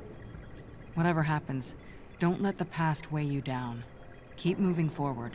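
A young woman speaks calmly and close.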